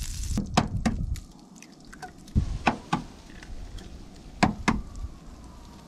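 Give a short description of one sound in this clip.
Eggshells crack sharply against a pan's rim.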